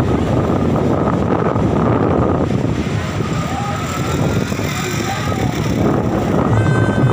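Strong wind rumbles across a nearby microphone.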